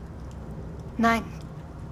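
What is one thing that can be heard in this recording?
A young woman answers briefly and softly.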